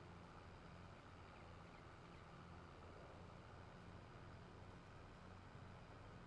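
A tractor engine hums steadily as it pulls a trailer.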